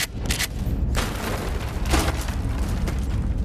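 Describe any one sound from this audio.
A metal crate clanks loudly with a sharp hit.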